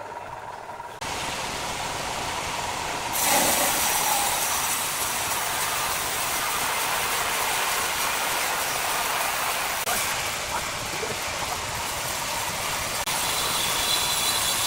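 A band saw roars loudly as it cuts through a large log.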